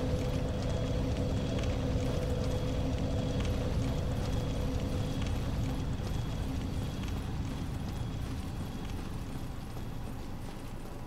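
A low rumbling roar fills the air, then fades.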